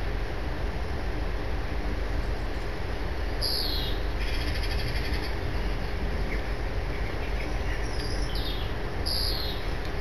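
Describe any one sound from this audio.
A deep, steady engine hum drones throughout.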